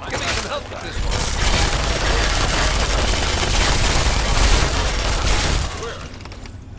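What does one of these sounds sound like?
Gunfire rattles loudly in a rapid burst.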